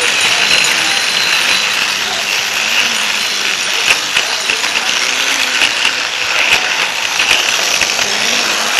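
A toy train motor whirs steadily up close.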